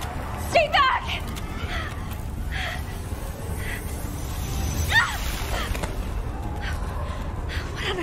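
A young woman shouts in alarm.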